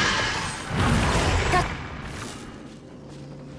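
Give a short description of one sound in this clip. Crackling electric blasts burst loudly and quickly fade.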